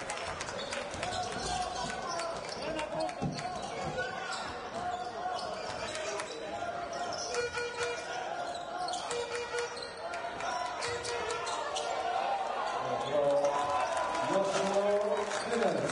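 A basketball bounces on the floor with dull thumps.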